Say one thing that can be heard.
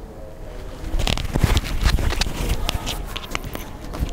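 Rustling and handling noises come through a microphone.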